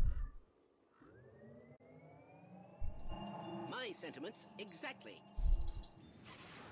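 A magical teleport hums and rises in pitch.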